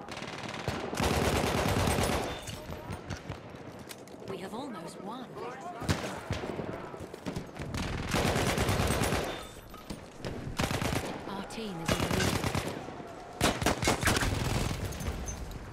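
A submachine gun fires rapid, loud bursts.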